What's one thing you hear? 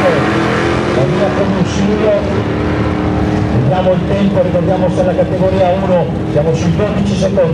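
Nearby spectators talk and call out excitedly.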